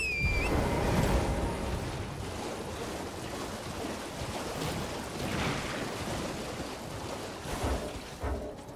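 Footsteps run quickly over rough stone.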